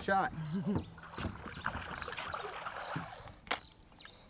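An arrow splashes into water.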